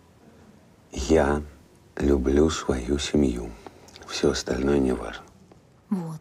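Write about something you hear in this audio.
A middle-aged man speaks in a low, serious voice close by.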